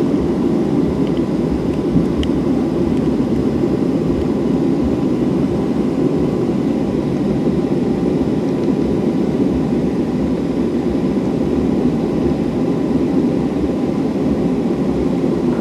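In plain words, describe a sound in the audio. Jet engines hum and roar steadily as an airliner taxis.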